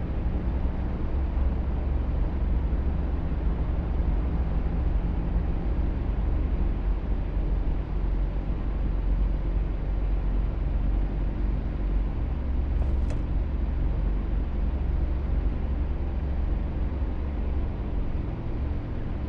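A van engine idles with a low steady rumble.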